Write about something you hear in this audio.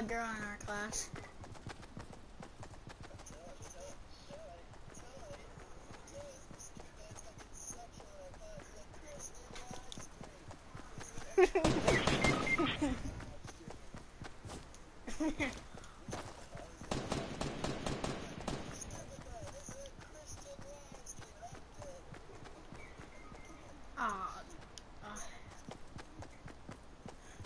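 A young woman talks casually into a nearby microphone.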